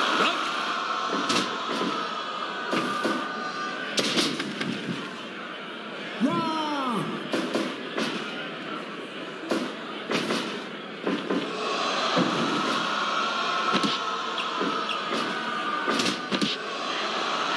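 Heavy bodies slam onto a wrestling mat with loud thuds.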